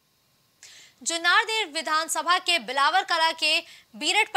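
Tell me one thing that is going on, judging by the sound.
A young woman reads out the news clearly through a microphone.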